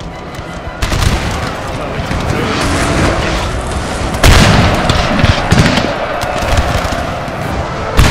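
Musket volleys crack and boom in rapid bursts.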